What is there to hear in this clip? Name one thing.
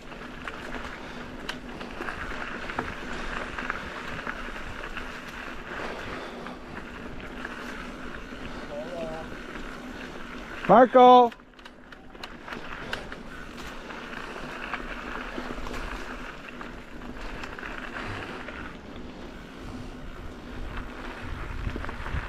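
Bicycle tyres roll over a dirt trail.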